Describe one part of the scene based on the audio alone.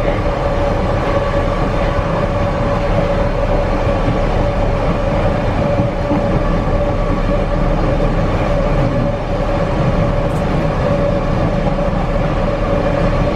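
Train wheels squeal with a steady high whine.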